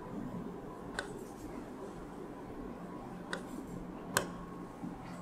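A pen taps lightly on a board.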